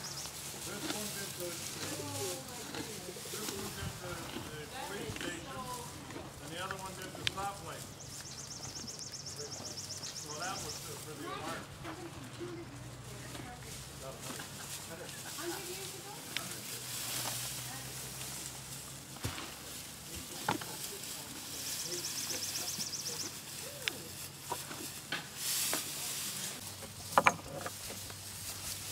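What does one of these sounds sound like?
Donkeys munch and crunch on dry hay close by.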